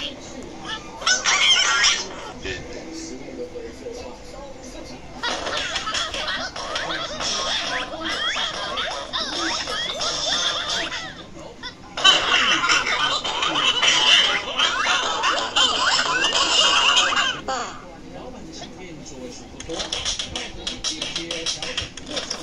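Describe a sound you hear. A game plays lively cartoon sounds through a small tablet speaker.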